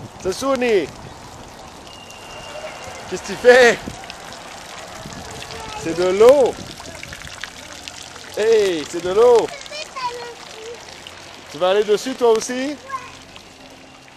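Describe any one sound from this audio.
A small child squeals and calls out loudly close by, in short bursts.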